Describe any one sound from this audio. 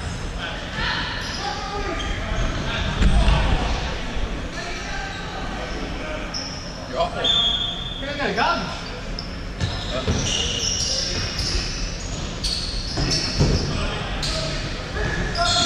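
Men shout and call out to each other at a distance.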